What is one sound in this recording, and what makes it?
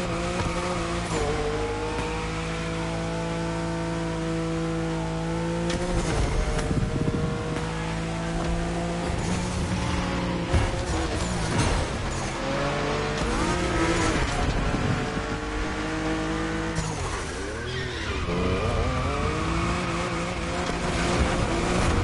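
Engine backfires crackle from an exhaust.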